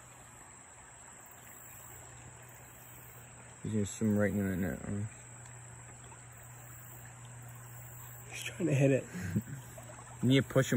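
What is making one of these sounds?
Shallow water trickles gently.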